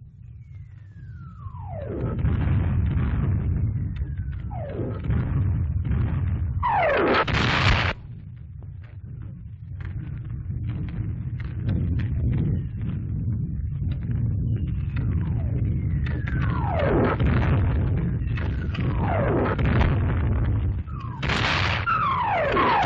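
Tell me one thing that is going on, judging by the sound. Artillery shells whistle down through the air.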